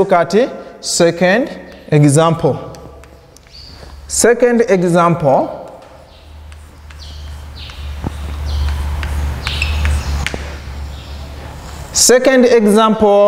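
A man speaks clearly and steadily, as if teaching, close by.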